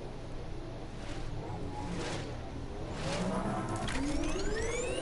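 A whooshing rush sweeps by.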